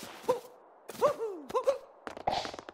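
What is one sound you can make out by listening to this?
Short bouncy jump sounds chirp and swoop in pitch.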